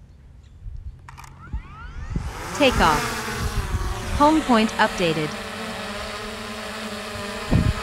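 Drone propellers spin up and whir steadily with a high buzzing hum.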